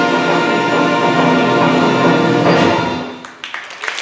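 A band plays a loud final chord in a large hall.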